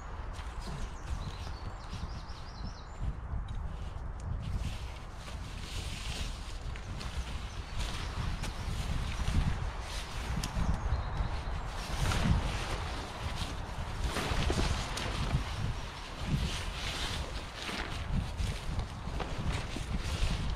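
A tarp rustles and flaps as it is handled.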